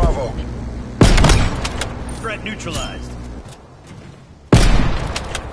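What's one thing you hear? A rifle fires a sharp, loud shot.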